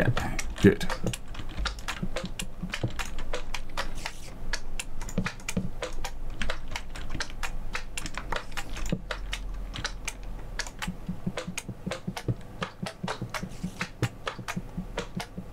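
Footsteps tap quickly and steadily on a wooden ladder.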